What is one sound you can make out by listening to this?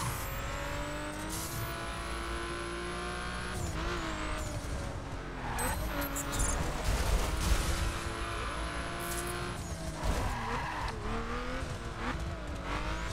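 A racing car engine roars and revs as it speeds along.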